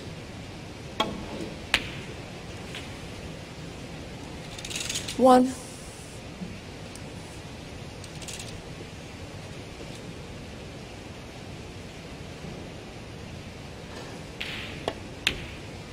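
A cue tip strikes a snooker ball with a sharp tap.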